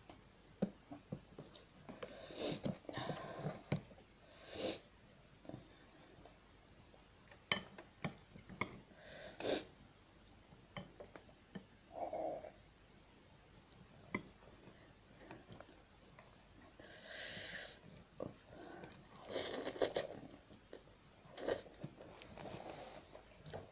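A young woman chews and slurps food close by.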